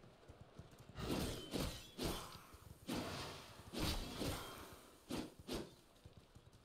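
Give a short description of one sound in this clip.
Sword blows strike a creature in quick bursts.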